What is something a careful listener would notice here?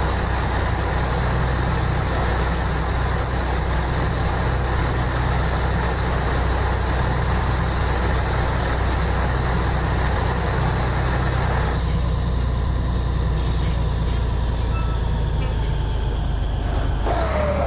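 Tyres hum on a road.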